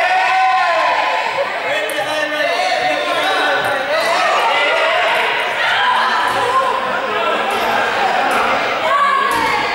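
Sneakers squeak and thud on a hard floor.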